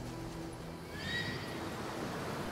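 An eagle screeches.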